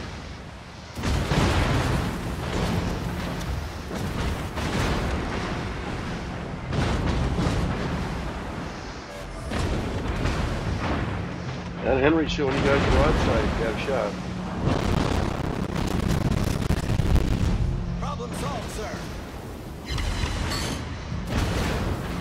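Heavy naval guns fire in loud booming salvos.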